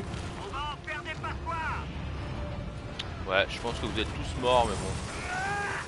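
A man speaks tersely over a radio.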